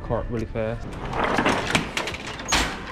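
A metal shopping cart rattles as it is pulled from a row of nested carts.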